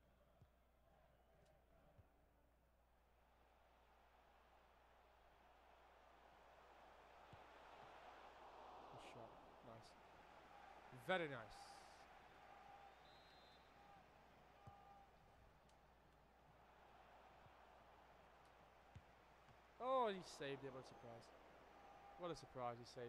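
A large crowd cheers and murmurs steadily, slowly swelling.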